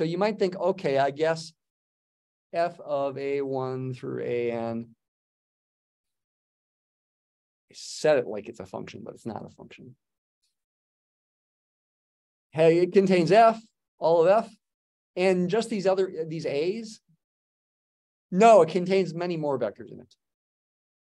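An elderly man speaks calmly through an online call microphone, in short phrases with pauses.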